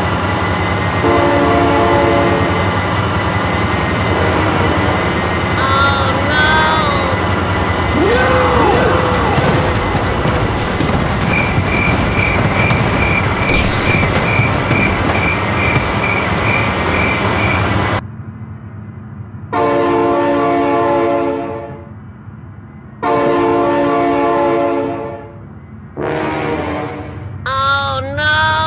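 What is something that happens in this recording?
A train horn blasts loudly several times.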